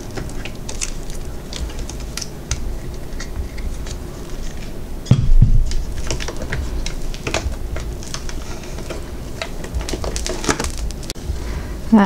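A flexible plastic mold crinkles and crackles as it is peeled back.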